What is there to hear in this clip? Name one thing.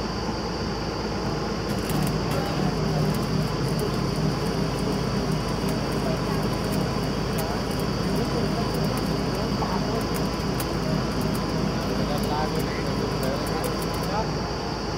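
A drilling rig's diesel engine rumbles steadily.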